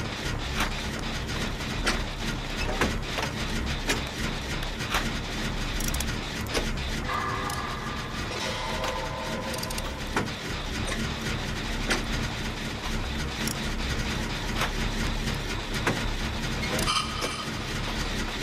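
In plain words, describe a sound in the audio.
A machine rattles and clanks as it is worked on.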